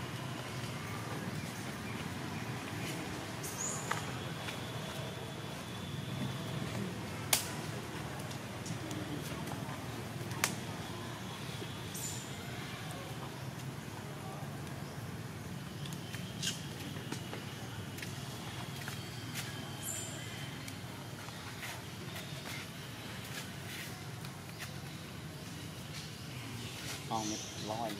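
A baby monkey squeaks and cries.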